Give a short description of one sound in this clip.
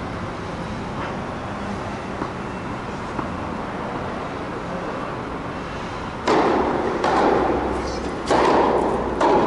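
A tennis racket strikes a ball with sharp pops in a large echoing hall.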